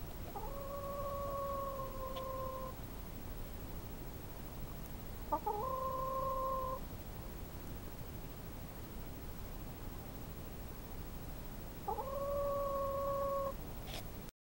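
A hen gives long, drawn-out clucking calls close by.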